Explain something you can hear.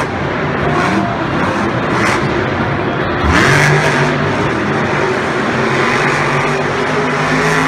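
A crowd cheers in a large echoing arena.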